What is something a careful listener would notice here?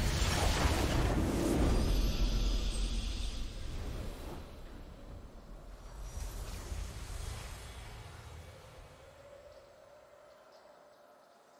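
A triumphant victory fanfare swells and slowly fades.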